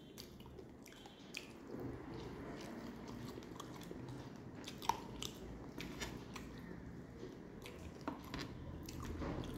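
Fingers squelch and squish through wet rice and fish.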